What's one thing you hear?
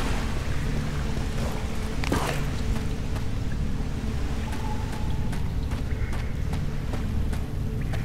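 Quick footsteps run on stone ground.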